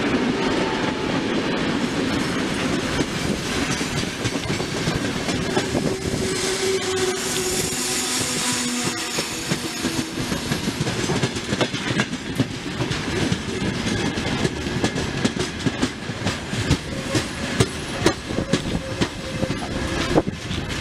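Open freight wagon wheels clatter rhythmically over rail joints.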